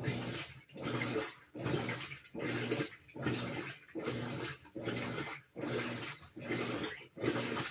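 A top-load washing machine agitates a load in rhythmic, whirring strokes.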